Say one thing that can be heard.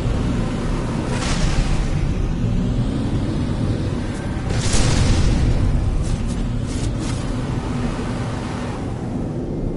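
Laser cannons fire in bursts.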